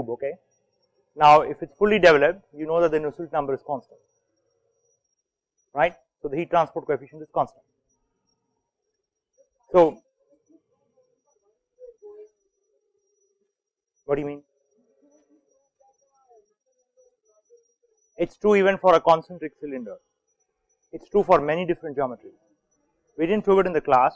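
A man lectures calmly, pausing often between phrases.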